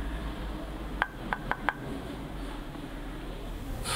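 Water pours from a cup.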